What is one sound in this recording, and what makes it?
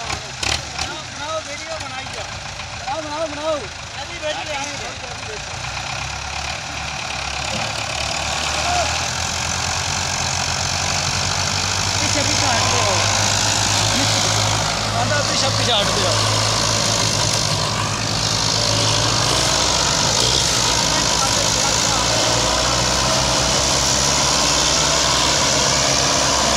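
A tractor engine rumbles steadily and grows louder as it strains.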